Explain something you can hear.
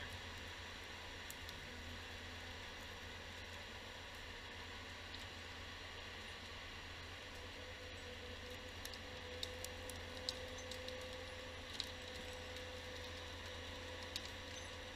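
A forestry machine's diesel engine rumbles steadily nearby.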